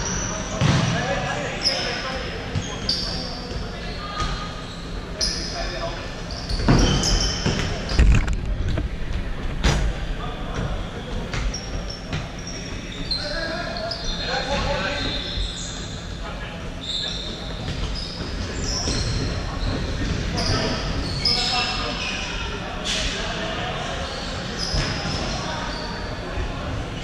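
Men shout and call out to each other across an echoing hall.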